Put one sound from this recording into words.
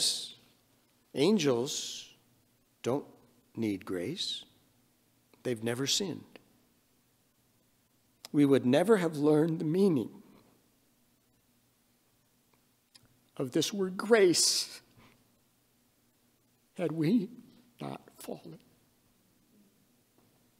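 An elderly man speaks slowly and calmly through a microphone, with pauses.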